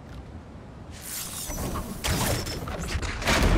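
A burst of magic crackles and whooshes.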